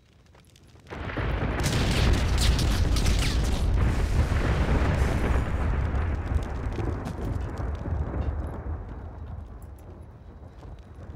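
Fire roars and crackles loudly.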